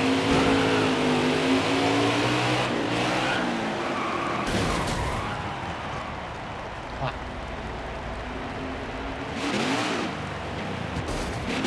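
Race car engines roar at high speed.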